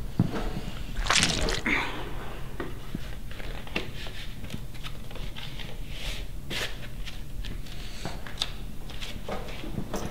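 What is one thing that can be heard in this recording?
A record sleeve rustles as a vinyl record slides out.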